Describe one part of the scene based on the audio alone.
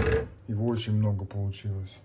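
A pot of stew simmers and bubbles softly.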